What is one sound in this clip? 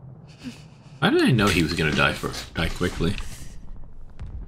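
A man cries out in pain, close by.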